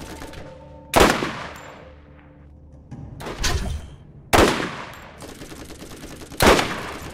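A sniper rifle fires loud, sharp shots that echo.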